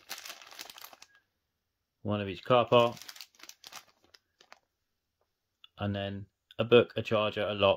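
A plastic bag crinkles and rustles in a hand.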